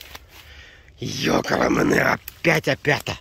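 Leafy undergrowth rustles and swishes close by.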